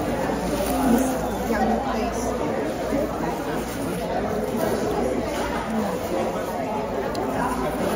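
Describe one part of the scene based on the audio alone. Paper crinkles as a woman unwraps it close by.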